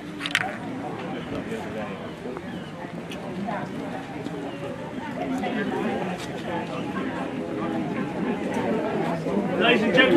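A crowd of men and women murmur and chat nearby, outdoors.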